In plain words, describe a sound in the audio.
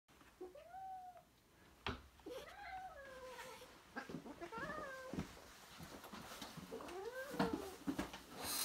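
A cat meows repeatedly nearby.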